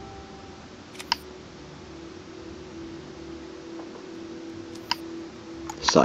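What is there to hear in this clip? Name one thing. A short menu chime sounds as the selection moves.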